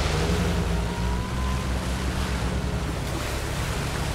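Tyres splash through shallow water.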